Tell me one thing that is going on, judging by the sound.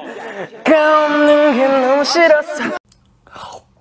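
A young man sings loudly through a microphone.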